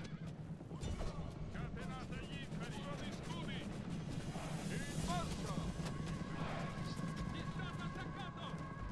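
Horse hooves thunder as cavalry charges.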